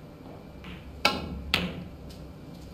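Snooker balls click sharply together.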